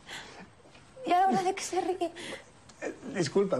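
A young woman speaks with surprise close by.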